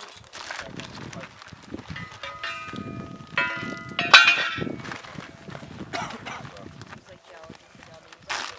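Two men talk at a distance outdoors.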